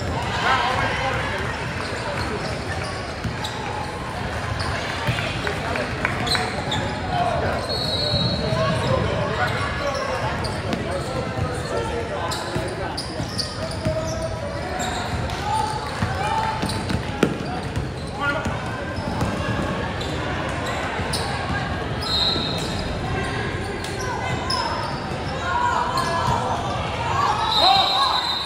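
Spectators chatter and call out in the stands.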